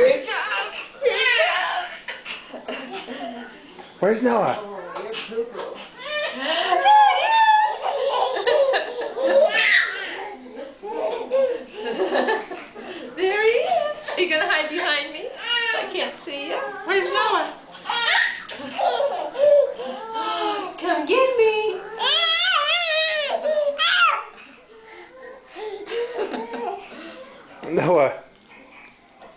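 A woman talks and coos brightly to a toddler nearby.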